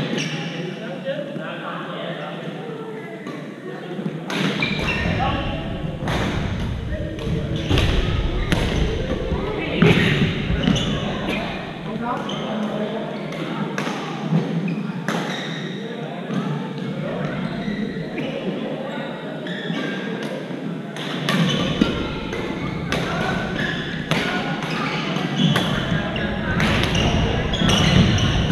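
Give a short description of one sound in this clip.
Players call out to each other across an echoing hall.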